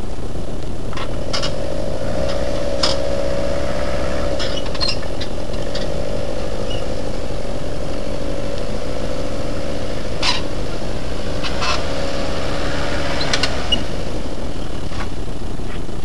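Tyres crunch and scrape over loose stones.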